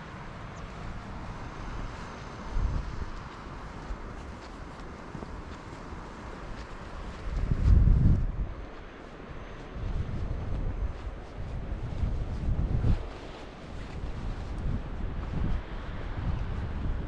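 Wind buffets outdoors in low, uneven gusts.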